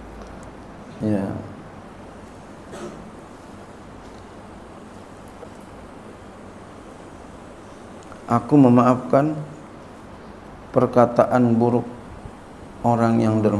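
An elderly man speaks slowly into a microphone, with long pauses, in an echoing room.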